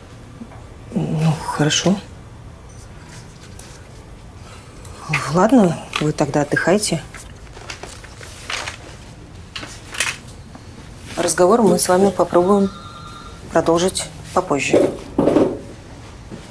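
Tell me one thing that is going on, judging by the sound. A woman speaks quietly and seriously close by.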